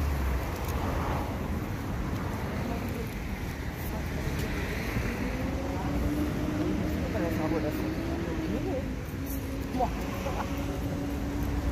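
Two women talk quietly outdoors, heard from a short distance.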